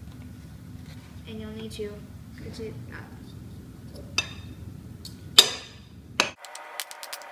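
A spoon scrapes and clinks against a mixing bowl.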